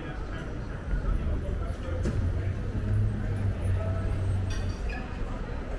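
A bus engine rumbles low nearby.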